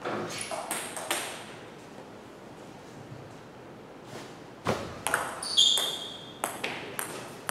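A table tennis ball clicks sharply back and forth between paddles and a table.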